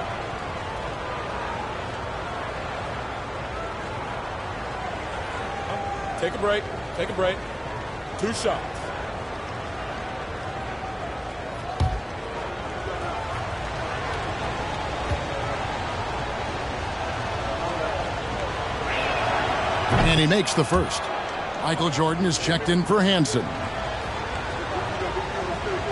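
A large crowd murmurs steadily in a big echoing arena.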